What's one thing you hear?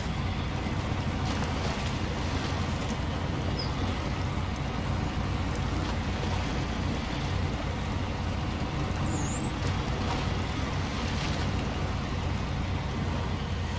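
Water splashes and churns as a truck drives through a river.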